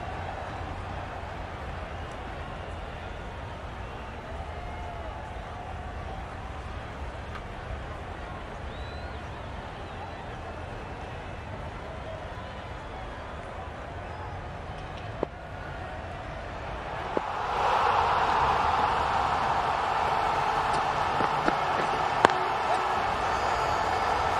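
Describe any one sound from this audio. A large stadium crowd murmurs and cheers, swelling into a loud roar.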